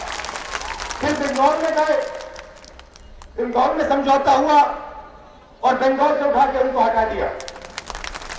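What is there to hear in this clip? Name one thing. A young man speaks forcefully into a microphone over loudspeakers, in short bursts.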